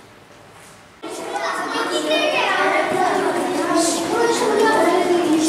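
A group of young children chatter loudly in an echoing corridor.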